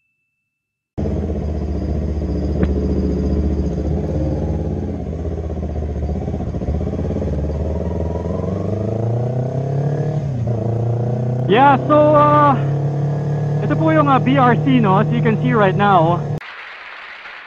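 A motorcycle engine runs close by, rising in pitch as it speeds up.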